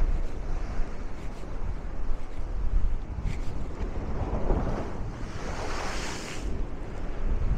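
Wind rumbles and blusters outdoors.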